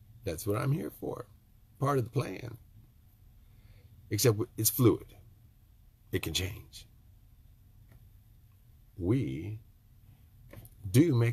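An elderly man speaks calmly and close to the microphone, in short phrases with pauses.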